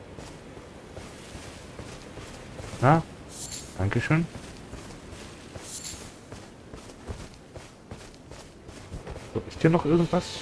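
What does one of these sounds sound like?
Footsteps tread softly through grass.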